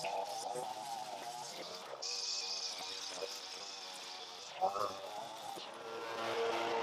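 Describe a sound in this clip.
A string trimmer whines as it cuts grass.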